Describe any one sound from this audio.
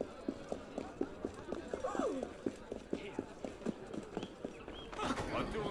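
Footsteps patter quickly on cobblestones.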